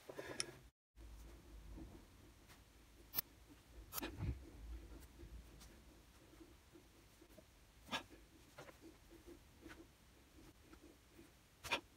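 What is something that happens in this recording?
Metal pliers click and tap against a small engine part.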